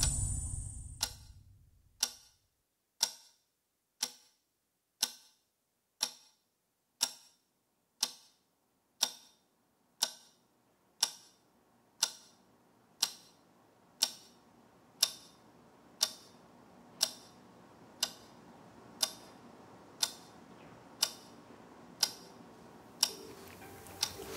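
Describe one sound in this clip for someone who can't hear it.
A clock ticks steadily, once each second.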